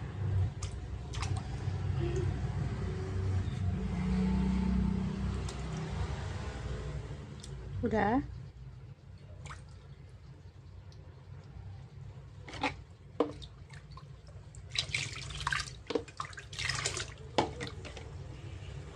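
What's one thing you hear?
A young monkey splashes about in water in a plastic basin.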